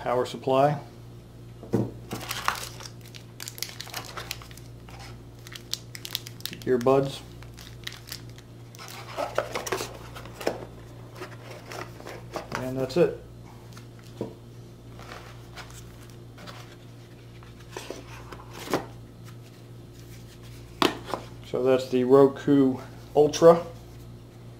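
Cardboard packaging rustles and scrapes as hands unpack a box.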